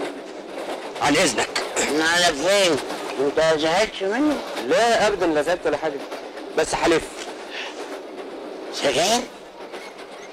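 An elderly man speaks pleadingly and with animation.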